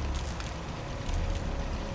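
A generator hums with a low, steady rumble.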